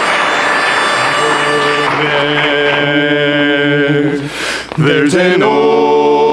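A group of men sings in close harmony through loudspeakers.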